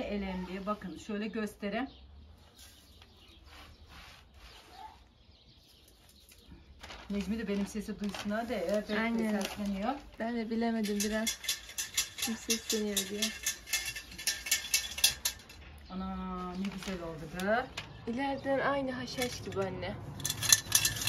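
A middle-aged woman talks calmly, close by.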